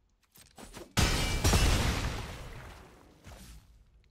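A heavy magical impact crashes and slowly fades.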